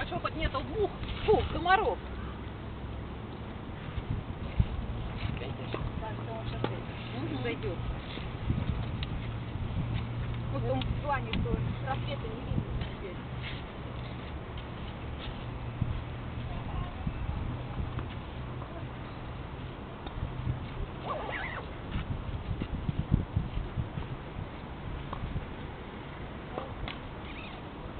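Adults talk with each other at a distance outdoors.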